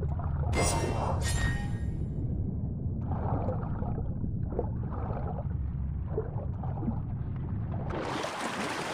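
Water rumbles in a low, muffled way, as if heard underwater.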